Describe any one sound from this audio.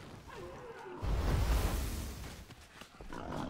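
A fiery blast bursts with a deep whoosh and boom.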